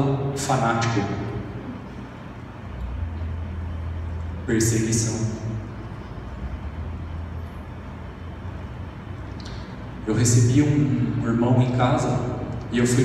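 A young man speaks calmly into a microphone through loudspeakers in an echoing hall.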